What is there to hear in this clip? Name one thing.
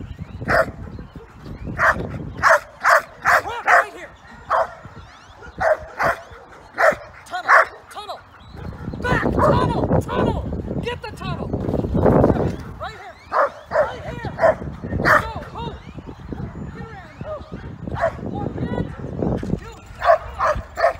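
A woman calls out short, sharp commands to a dog.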